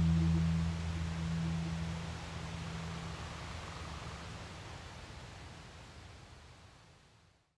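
Gentle waves wash over open sea.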